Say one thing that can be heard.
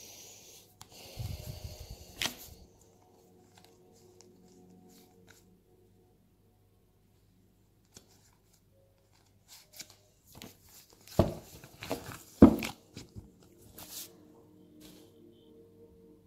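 Playing cards shuffle and riffle together with soft slaps.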